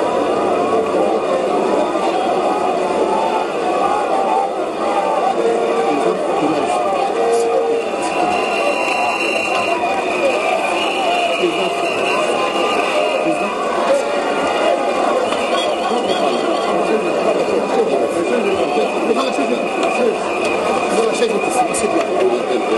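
A large crowd murmurs and chatters steadily outdoors.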